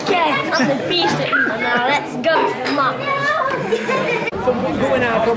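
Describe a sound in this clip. A young boy talks excitedly and laughs close by.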